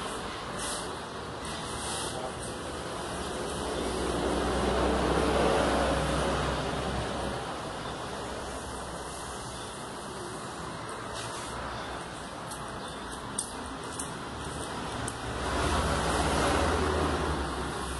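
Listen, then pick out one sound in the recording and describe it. A small tool scrapes and taps against a plastic panel.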